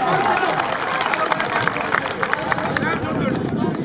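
Men clap their hands in the crowd.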